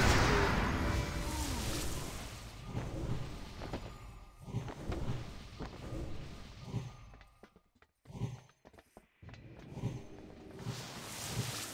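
Magic spells whoosh and shimmer.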